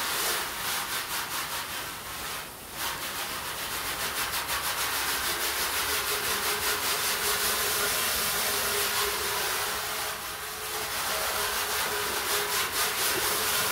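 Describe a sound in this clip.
Water spatters on a hard surface.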